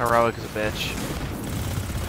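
An electric beam crackles and hums.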